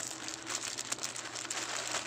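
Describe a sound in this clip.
Scissors snip through plastic.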